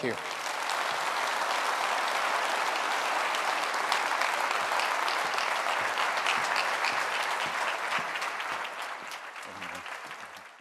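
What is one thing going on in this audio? A large audience applauds in a big echoing hall, fading toward the end.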